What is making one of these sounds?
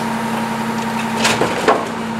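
A garbage truck's cart tipper lifts and bangs a bin.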